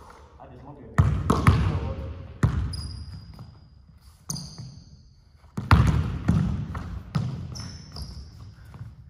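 A basketball bounces hard on a wooden floor, echoing in a large hall.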